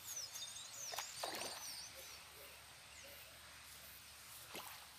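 A fish splashes in the water near the bank.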